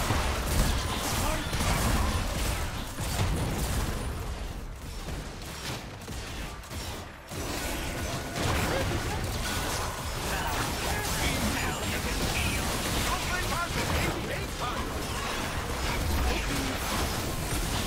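Video game combat sound effects play, with spells and hits.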